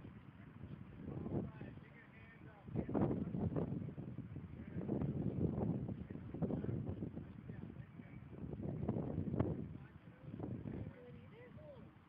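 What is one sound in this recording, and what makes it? Wind gusts rumble against the microphone outdoors.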